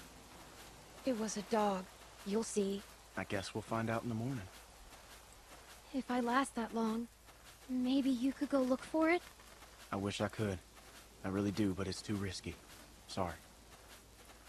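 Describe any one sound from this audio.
A young girl speaks anxiously, close by.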